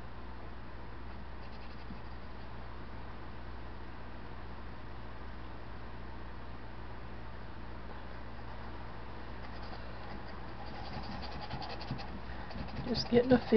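A paintbrush dabs and scrapes softly on canvas.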